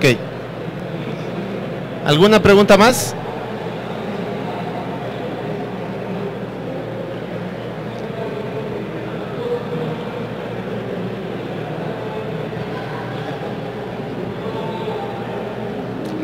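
A young man speaks steadily through a microphone in a large hall.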